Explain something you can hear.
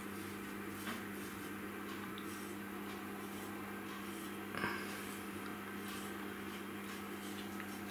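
A knife slices through fat and meat, with soft scraping sounds.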